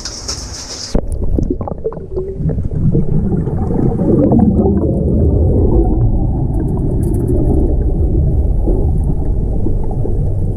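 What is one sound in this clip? Air bubbles gurgle and roar underwater, muffled and loud.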